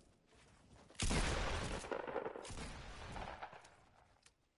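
A pickaxe strikes and smashes a wall with loud crashing blows.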